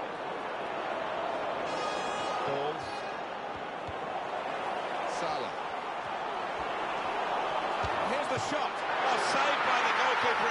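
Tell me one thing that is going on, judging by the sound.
A large stadium crowd roars steadily, swelling toward the end.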